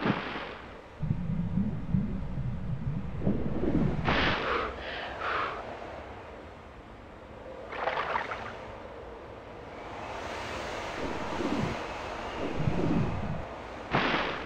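Water sloshes as someone wades through it.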